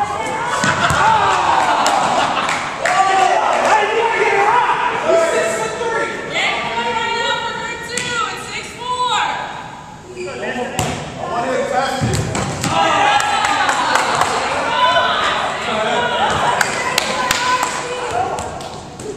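Several young people shout and call out with animation in a large echoing hall.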